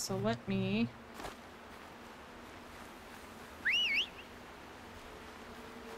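Footsteps rustle through leafy plants.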